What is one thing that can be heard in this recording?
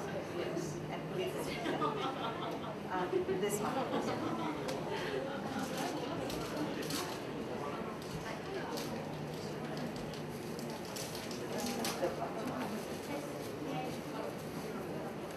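Plastic wrap crinkles in a woman's hands.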